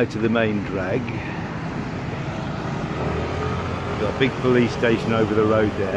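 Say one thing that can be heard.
A motorbike engine putters by close.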